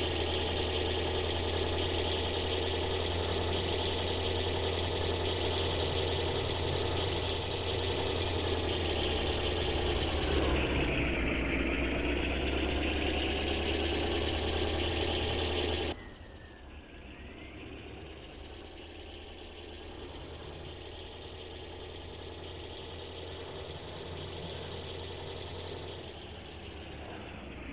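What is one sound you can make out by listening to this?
A car engine drones steadily, loud at first and then more muffled.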